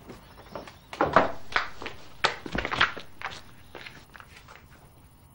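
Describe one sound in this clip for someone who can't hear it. A woman gasps and struggles close by.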